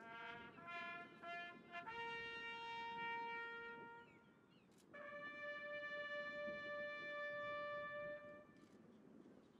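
A bugle plays a slow call outdoors, the notes ringing clearly.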